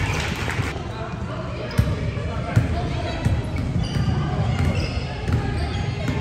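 A volleyball is struck with hard thumps.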